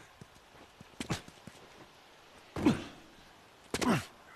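Heavy thuds sound as a person jumps down and lands outdoors.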